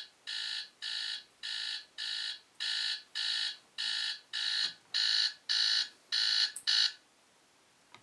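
A phone alarm beeps loudly in quick, even bursts, then stops.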